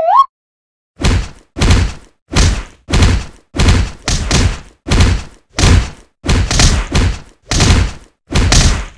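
Heavy punches land in a rapid, repeated series of thuds.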